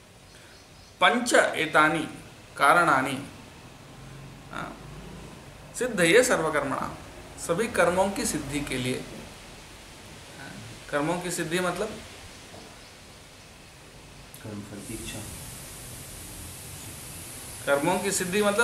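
A man speaks calmly close to the microphone, in short bursts with pauses.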